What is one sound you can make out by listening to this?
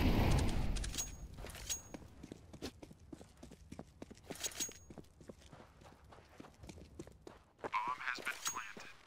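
Footsteps run quickly on a hard surface.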